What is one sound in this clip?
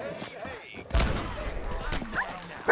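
An explosion bursts with a deep rumbling boom.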